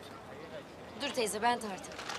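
A young woman speaks warmly nearby.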